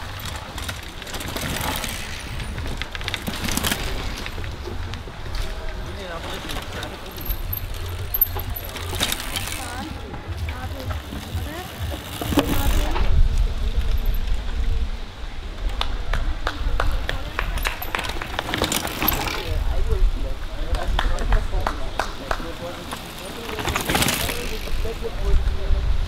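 Mountain bikes ride past one after another, their tyres crunching over dirt and roots.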